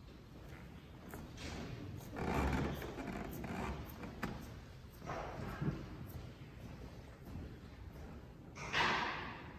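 Footsteps shuffle softly across a carpeted floor.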